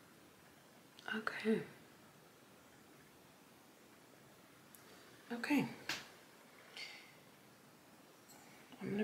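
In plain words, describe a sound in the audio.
A young woman speaks briefly and softly, close by.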